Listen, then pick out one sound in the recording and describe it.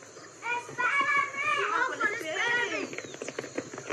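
Children shout excitedly close by.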